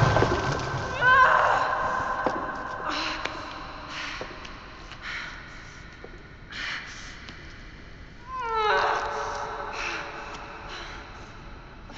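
A young woman groans and gasps in pain.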